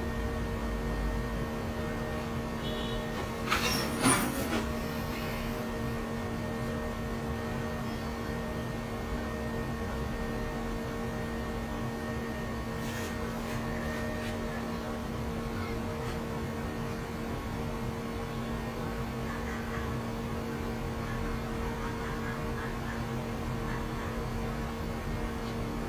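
A metal tool scrapes and rustles faintly inside an ear, close up.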